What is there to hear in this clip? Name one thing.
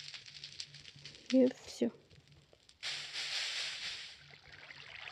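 Water pours and splashes.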